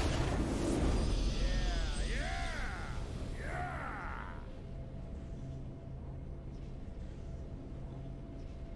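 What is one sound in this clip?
A triumphant victory fanfare plays.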